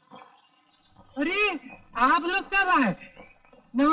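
A man speaks with animation in a drawn-out, sing-song voice.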